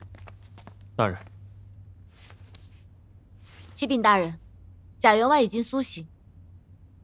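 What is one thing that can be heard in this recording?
A young woman speaks sharply and with emotion nearby.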